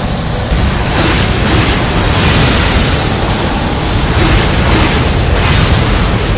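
Fiery blasts crackle and roar.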